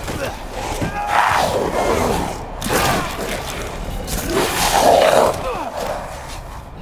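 A creature snarls and roars up close.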